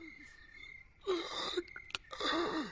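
Zombies growl and groan nearby.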